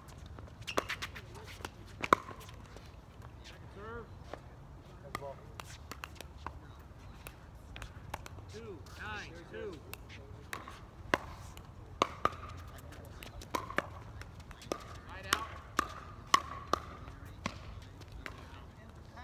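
Paddles hit a plastic ball with sharp pops.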